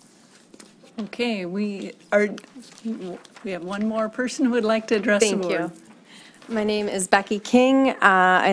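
A young woman speaks into a microphone in a friendly, animated way.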